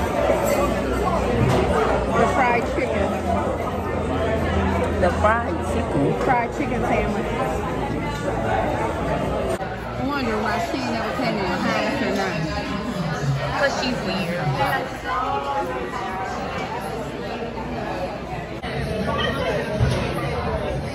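A crowd of diners chatters in the background.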